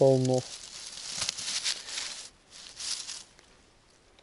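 A knife cuts a mushroom stem, rustling dry grass.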